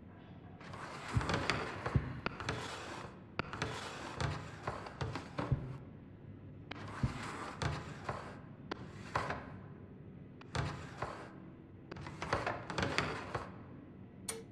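Metal drawers slide open and shut with scraping rattles.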